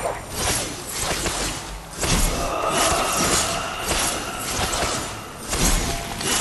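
A blade swings and slashes through the air again and again.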